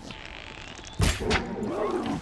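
A bow string snaps as an arrow is shot.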